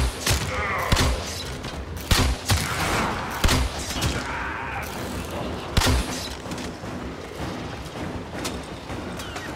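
A rifle fires sharp single shots with a booming echo.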